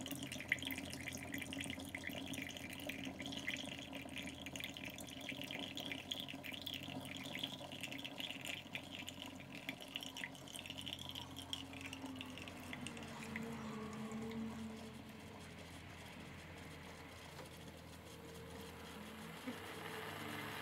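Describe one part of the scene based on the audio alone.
Coffee pours in a thin stream into a mug.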